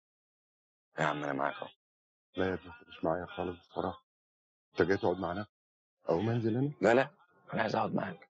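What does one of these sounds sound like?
A younger man speaks earnestly up close.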